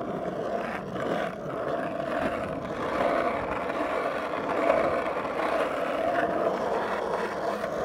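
Skateboard wheels roll steadily over rough asphalt.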